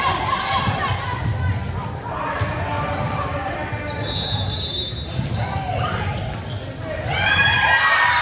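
A volleyball is hit with sharp thumps in a large echoing gym.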